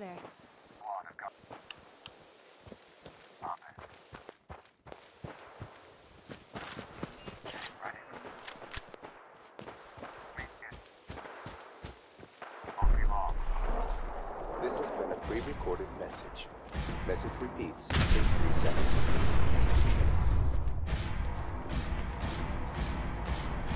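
Footsteps crunch over grass and gravel at a steady walking pace.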